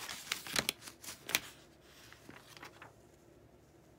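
A thin paper sheet rustles and crackles as it is handled.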